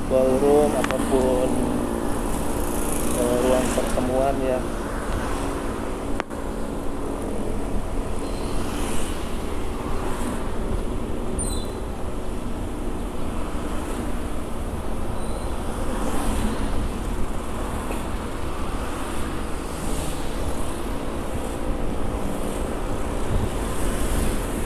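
Traffic passes by on the road.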